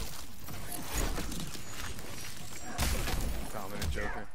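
An ice blast crackles and shatters.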